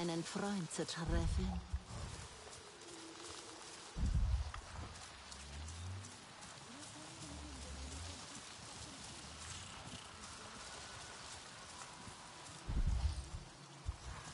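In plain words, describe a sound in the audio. Leaves and plants rustle as someone pushes through thick undergrowth.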